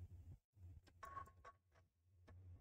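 A crowbar strikes and splinters wooden boards.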